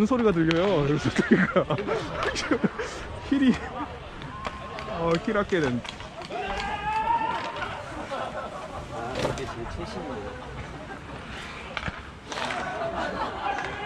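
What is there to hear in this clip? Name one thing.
Young men talk and call out nearby, outdoors.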